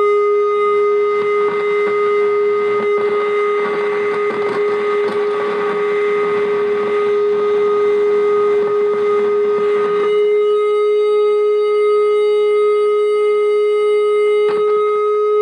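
A synthesizer drones on one steady pitch.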